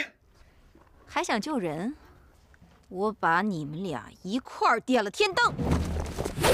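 Another young woman answers calmly and coldly.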